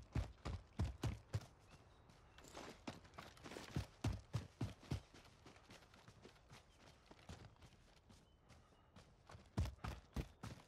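Footsteps crunch on snowy, grassy ground.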